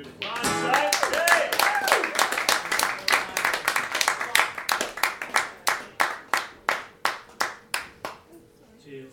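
An acoustic guitar is strummed hard and fast through a loudspeaker, slowing to single sharp chords.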